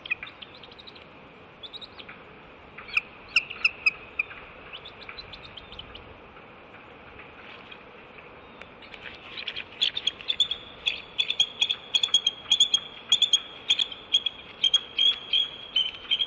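An eagle gives high, chattering cries that grow louder and quicker near the end.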